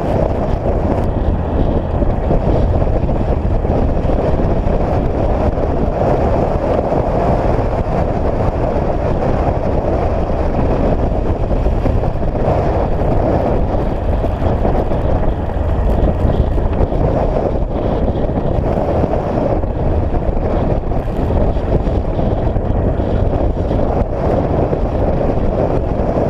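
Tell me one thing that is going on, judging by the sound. A vehicle's engine rumbles steadily.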